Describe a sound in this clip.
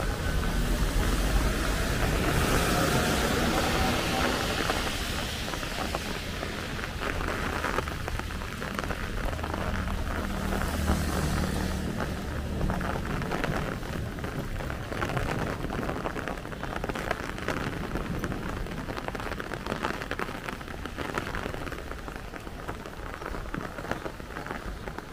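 Car engines hum as traffic passes close by.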